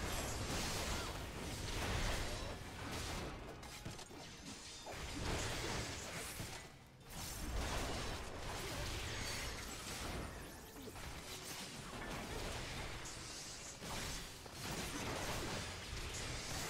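Magic spells and sword strikes crackle and clash in a loud battle.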